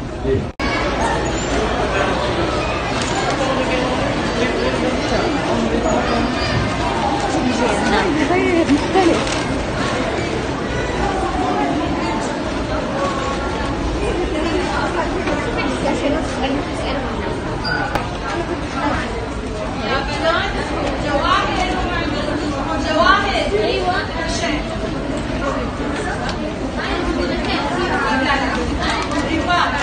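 A crowd of people chatter in a busy echoing indoor space.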